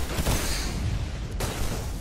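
A video game melee blow lands with a heavy thump.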